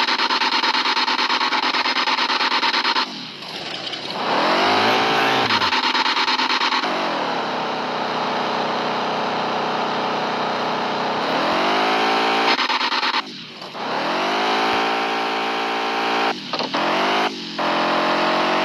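A truck engine roars and revs up and down.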